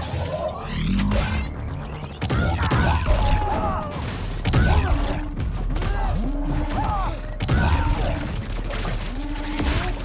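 Energy blasts boom and crackle in bursts.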